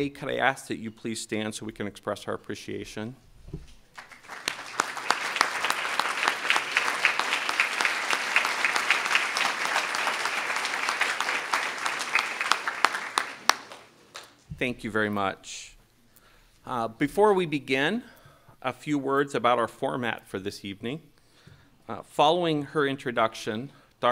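A middle-aged man speaks calmly through a microphone in a large hall.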